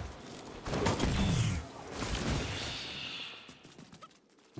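A loud explosion bursts and rumbles.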